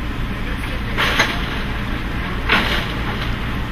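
A metal lighting truss clanks as it is pushed onto a truck.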